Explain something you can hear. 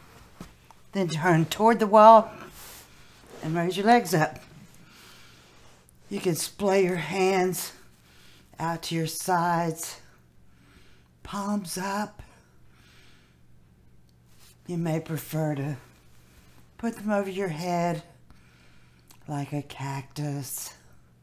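A woman speaks calmly and clearly, in short phrases with pauses.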